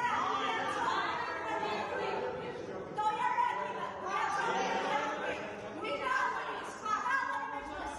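A crowd of men and women sings together loudly.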